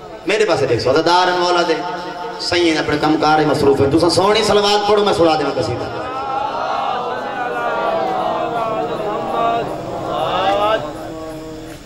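A young man chants a lament loudly through a microphone, echoing over loudspeakers.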